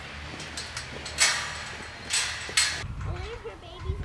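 A metal gate clanks as it is swung into place.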